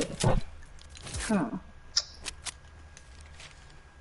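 Wooden building pieces snap into place with short knocks.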